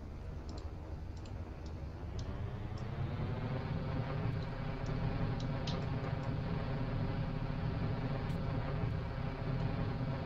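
Small thrusters hiss in short bursts.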